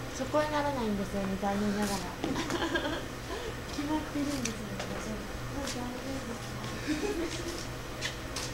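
Young women talk quietly nearby.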